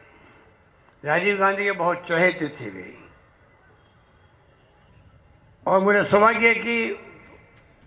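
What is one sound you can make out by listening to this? An elderly man speaks forcefully into a microphone over a loudspeaker, with pauses.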